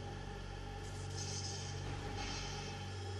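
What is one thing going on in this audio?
A beam charges up with a bright fizzing crackle.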